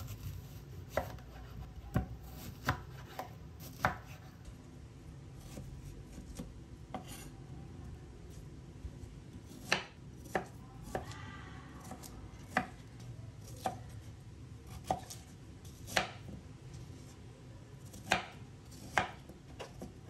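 A knife knocks sharply on a wooden chopping board.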